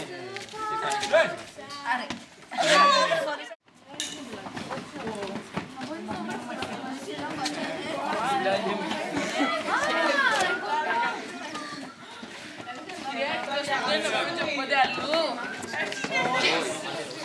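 A crowd of teenagers chatters and shouts outdoors.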